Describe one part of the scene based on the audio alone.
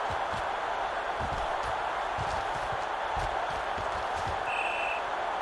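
Football players' pads clash and thud.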